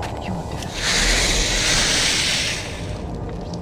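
A fire flares up with a loud hiss and roar.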